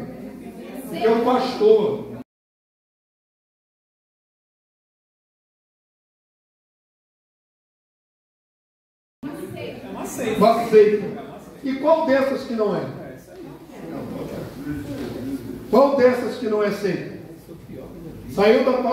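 A man speaks through a microphone, lecturing with animation in an echoing room.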